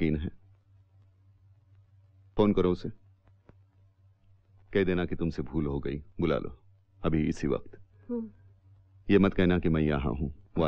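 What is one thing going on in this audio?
A middle-aged man speaks calmly and closely.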